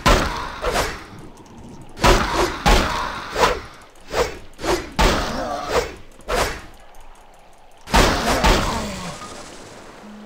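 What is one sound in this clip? Heavy blows strike a body again and again in a close fight.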